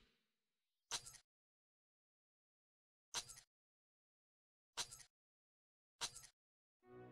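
Short menu beeps sound.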